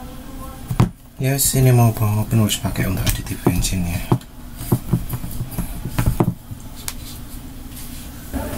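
A plastic lid clicks and rattles as hands handle it.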